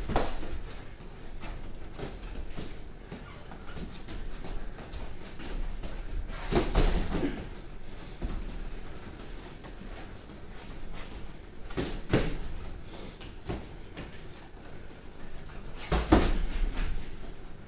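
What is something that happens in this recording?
Sneakers squeak and shuffle on a padded ring floor.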